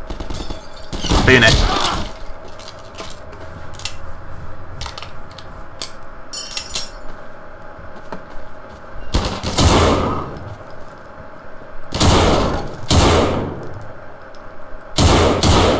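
Gunshots fire in loud bursts that echo.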